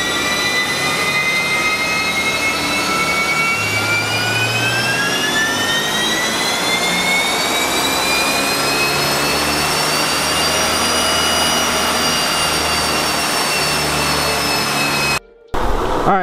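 A turbocharged Subaru flat-four engine revs up under full throttle on a chassis dyno.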